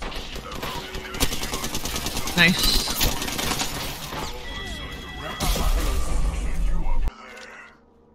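Rapid gunfire bursts out close by.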